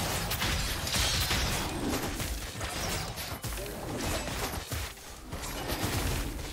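Fighting sound effects clash and whoosh in a video game.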